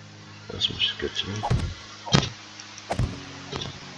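A wooden block knocks into place with a hollow thud.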